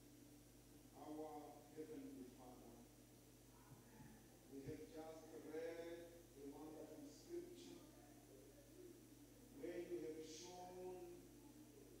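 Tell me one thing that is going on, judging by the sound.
A man speaks in a low, solemn voice in an echoing hall.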